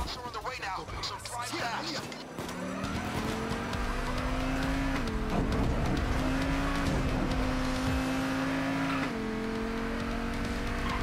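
A sports car engine revs up and roars, dropping in pitch as it shifts gears.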